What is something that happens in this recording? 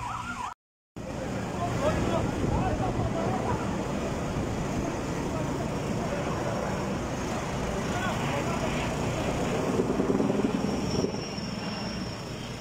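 A large fire roars and crackles close by.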